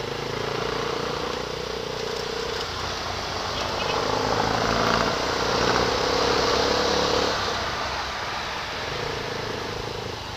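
Traffic passes on a busy road.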